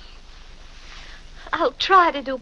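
A young woman exclaims in surprise, close by.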